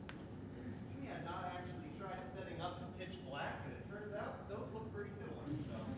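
A man speaks quietly at a distance in a large hall.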